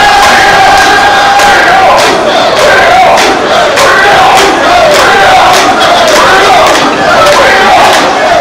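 A large crowd of men chants loudly in rhythm outdoors.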